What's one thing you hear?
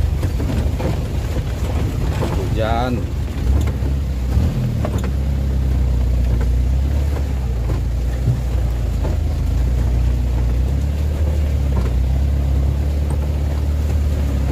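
A vehicle engine rumbles steadily at low pitch.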